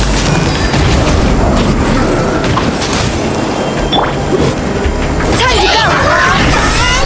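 Fiery blasts and magical impacts crackle and boom.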